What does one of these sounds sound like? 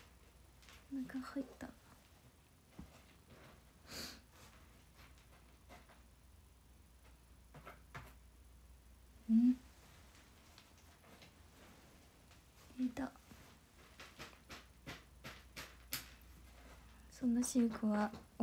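A young woman speaks softly in short bursts, close to a microphone.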